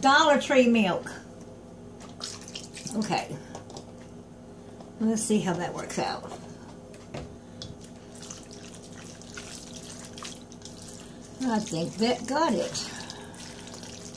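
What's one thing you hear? A spoon stirs and scrapes through a thick mixture in a metal bowl.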